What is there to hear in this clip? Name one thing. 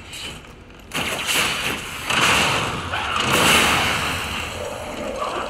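A heavy metal weapon slashes into a creature with loud impacts.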